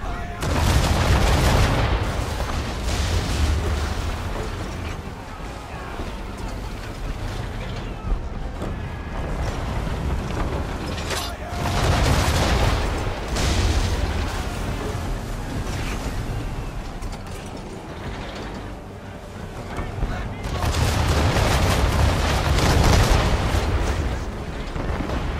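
Explosions rumble and roar over water.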